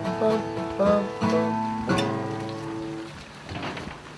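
A man strums chords on an acoustic guitar.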